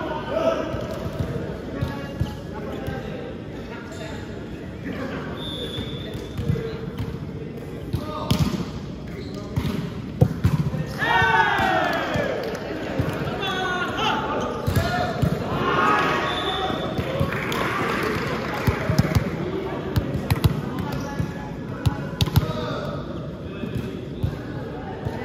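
A volleyball thumps off players' arms and hands in a large echoing hall.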